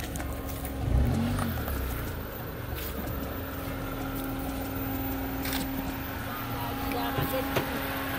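A car engine hums steadily nearby.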